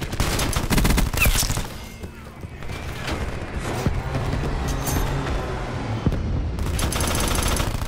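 A video-game energy rifle fires in bursts.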